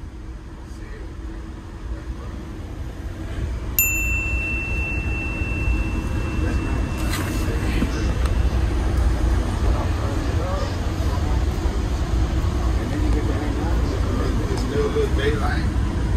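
A commuter train rumbles along, heard from inside a passenger coach.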